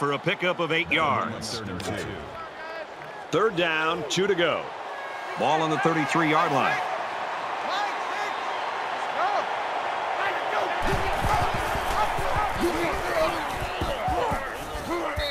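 A stadium crowd cheers and roars in the distance.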